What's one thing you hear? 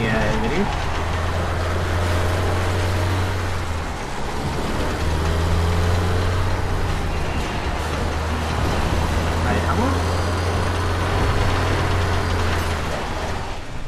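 Tires churn through mud.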